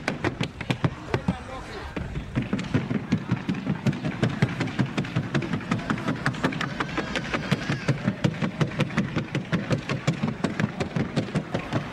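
Hooves clatter in a rapid, even beat on hollow wood.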